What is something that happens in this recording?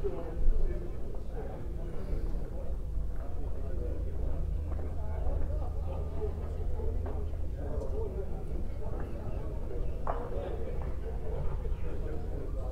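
A lawn bowl rolls across an indoor carpet green.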